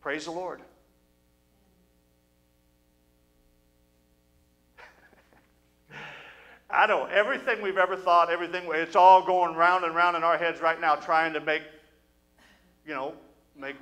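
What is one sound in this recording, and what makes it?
An older man speaks with animation into a microphone, heard through a loudspeaker in an echoing hall.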